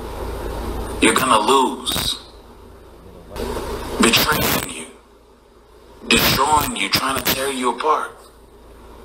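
A young woman raps loudly into a microphone through loudspeakers, in bursts.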